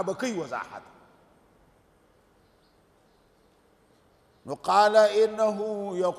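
A man chants in a sustained, melodic voice through a microphone.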